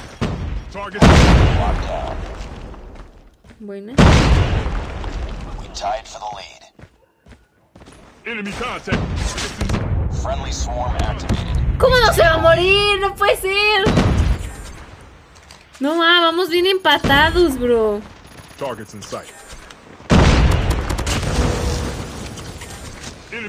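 Gunfire bursts from a video game.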